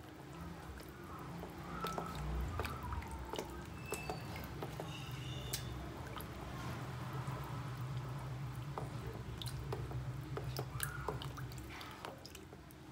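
Thick batter sloshes as it is whisked.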